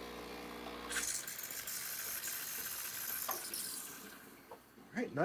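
A steam wand hisses loudly.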